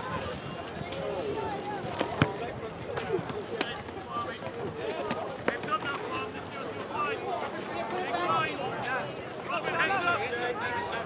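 A crowd of men talk and shout outdoors.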